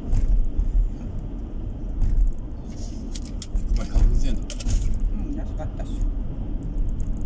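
A car's engine hums steadily, heard from inside the car.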